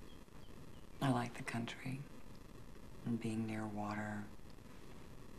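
A woman speaks quietly and tensely nearby.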